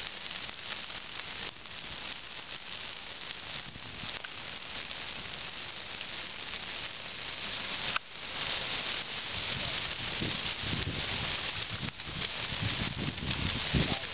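A large bonfire roars and crackles.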